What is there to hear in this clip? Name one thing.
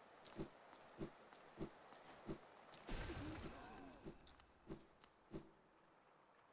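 Soft, regular footsteps thud on stone.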